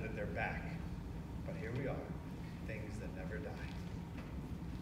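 A man speaks briefly through a microphone in a large hall.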